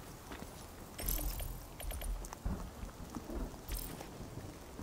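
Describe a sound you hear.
Short sharp interface clicks and rustles sound as gear is sorted.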